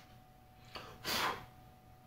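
A man blows a short puff of air.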